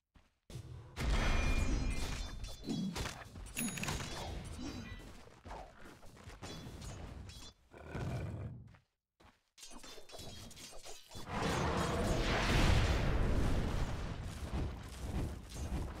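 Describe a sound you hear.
Spells and weapons clash in a fast battle.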